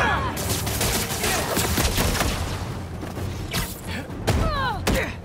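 Heavy blows land with sharp thuds and crashes.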